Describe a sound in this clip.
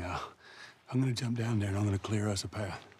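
A teenage girl speaks quietly nearby.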